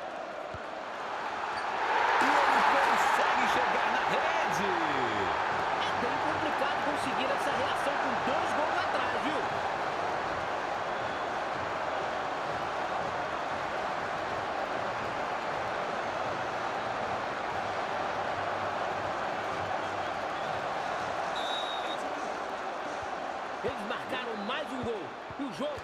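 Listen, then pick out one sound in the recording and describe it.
A large crowd roars and cheers loudly.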